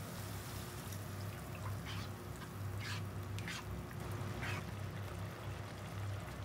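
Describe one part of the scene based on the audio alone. A sauce bubbles softly in a pan.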